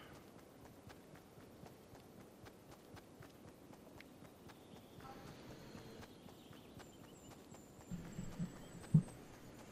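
Quick footsteps patter through grass.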